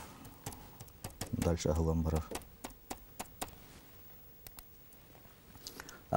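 Keyboard keys click in quick, uneven taps.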